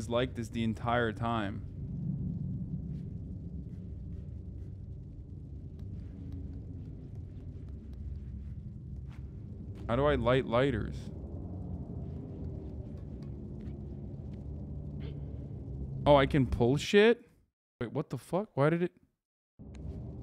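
A man talks into a microphone in short bursts.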